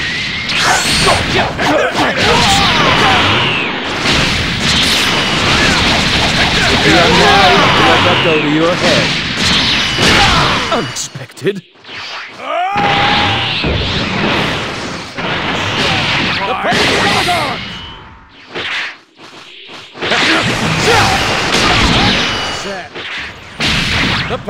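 Energy blasts whoosh and explode loudly.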